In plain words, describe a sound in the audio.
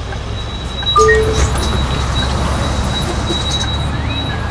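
A bus engine revs louder as the bus pulls away.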